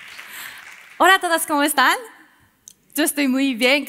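A young woman speaks brightly through a headset microphone.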